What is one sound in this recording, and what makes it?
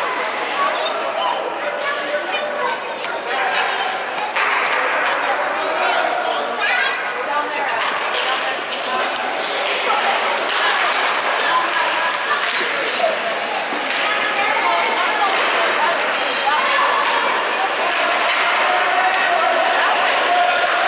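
Skate blades scrape and hiss on ice.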